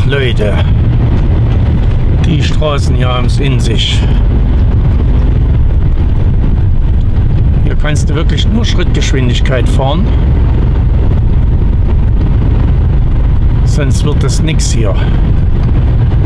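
A large vehicle's engine rumbles steadily as it drives along a road.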